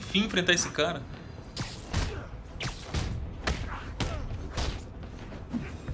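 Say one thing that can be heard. Punches and kicks thud and smack in a fight.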